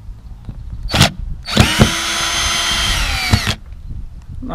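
A cordless drill whirs as it drives out a screw, then winds down.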